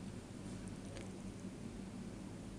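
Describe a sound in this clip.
An egg cracks against the rim of a bowl.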